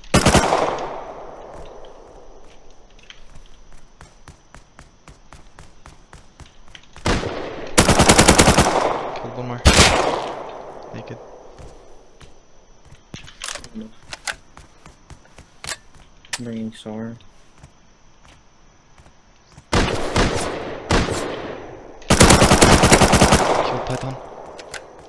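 An automatic rifle fires loud rapid bursts that echo away.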